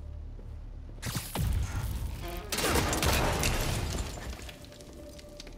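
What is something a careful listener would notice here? A heavy metal door bursts apart with a loud crash.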